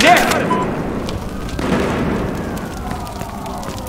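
A car fire crackles and roars nearby.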